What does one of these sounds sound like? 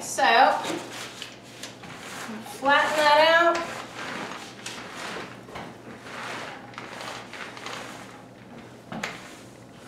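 A paint roller swishes back and forth over a soft sheet, close by.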